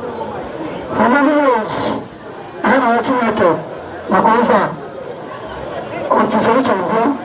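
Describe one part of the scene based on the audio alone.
A man speaks loudly and forcefully into a microphone, heard through loudspeakers outdoors.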